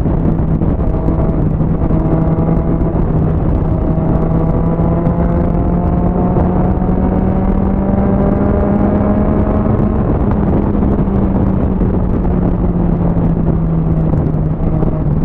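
A motorcycle engine hums steadily and slowly rises in pitch as it speeds up.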